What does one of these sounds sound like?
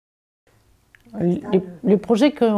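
Another middle-aged woman speaks calmly and close to a microphone.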